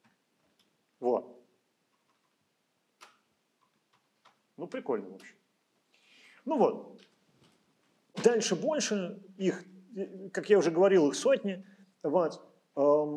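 An older man speaks calmly through a microphone, pausing often.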